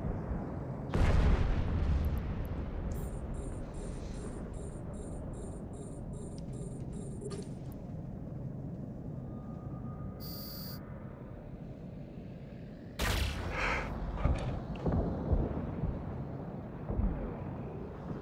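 Laser weapons fire in loud, roaring blasts.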